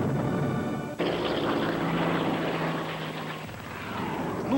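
A propeller plane engine drones steadily overhead.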